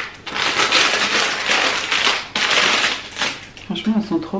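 Fabric rustles as it is handled close by.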